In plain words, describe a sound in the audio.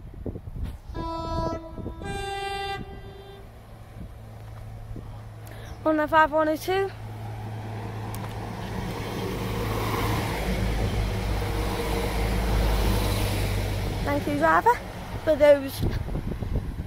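A train sounds its horn several times as it approaches.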